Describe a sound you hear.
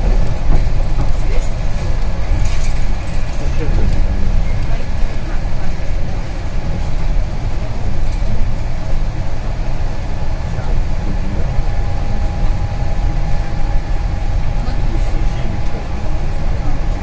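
Tyres roll on a wet road.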